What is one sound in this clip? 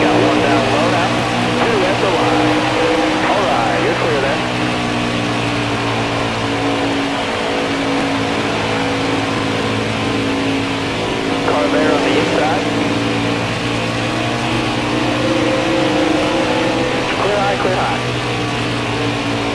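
A racing truck engine roars steadily at high speed.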